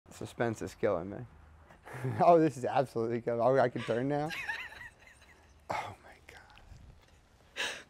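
A young man speaks with excitement close by.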